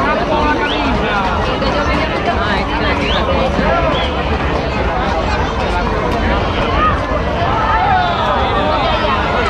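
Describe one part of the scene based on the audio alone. A large outdoor crowd chatters and calls out all around.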